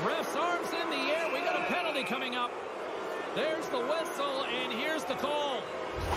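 A large arena crowd murmurs and cheers.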